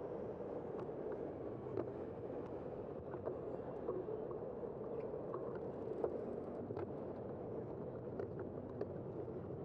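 Wind rushes steadily past.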